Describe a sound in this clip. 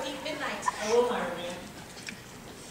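A young woman speaks with feeling from a distance in a large hall.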